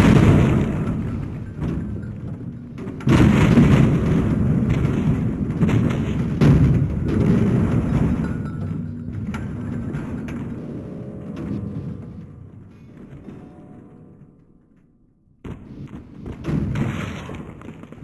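Bodies thud and crash against each other and the ground.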